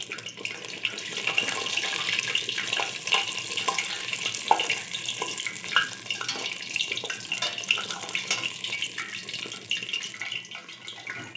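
Oil sizzles softly in a pot.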